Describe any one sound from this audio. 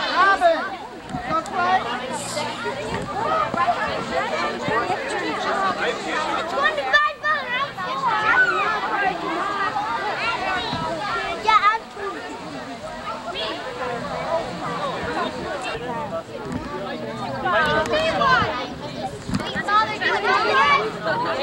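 Children shout and squeal excitedly.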